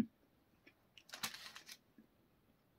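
Paper crinkles as a slice of pizza is handled.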